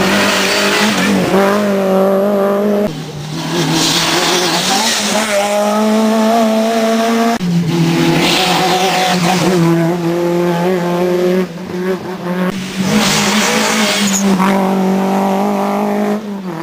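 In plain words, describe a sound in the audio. Rally car engines roar at high revs as cars speed past close by.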